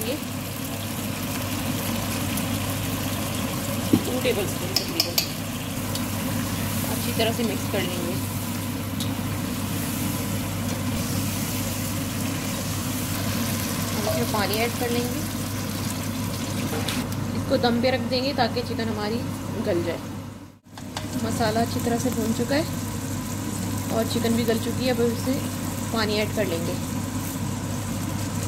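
Sauce sizzles and bubbles in a pan.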